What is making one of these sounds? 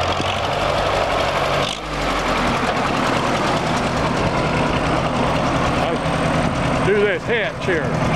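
An old tractor engine chugs steadily close by.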